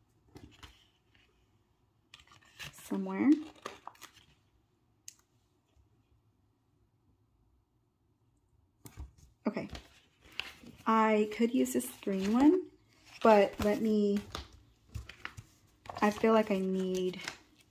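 Paper sheets rustle as they are handled.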